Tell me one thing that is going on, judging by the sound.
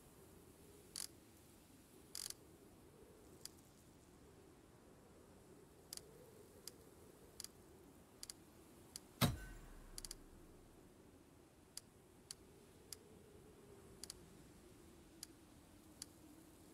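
Short, sharp menu clicks sound now and then.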